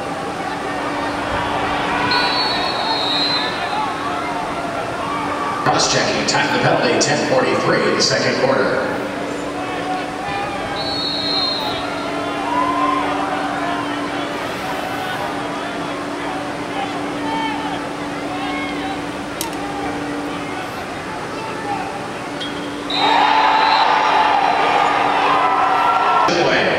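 Young men shout far off across a large open stadium field.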